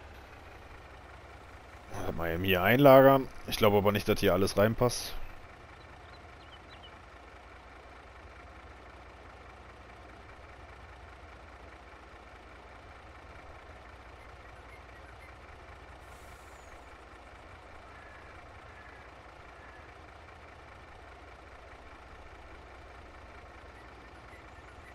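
A truck engine idles with a low, steady hum.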